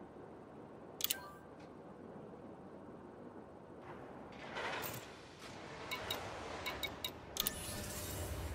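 Short electronic beeps chime from a control panel.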